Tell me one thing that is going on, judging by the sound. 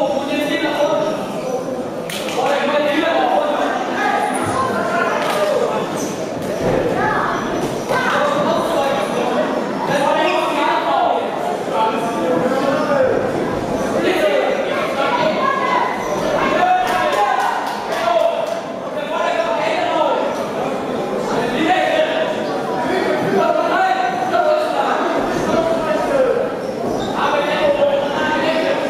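A crowd chatters and shouts throughout a large echoing hall.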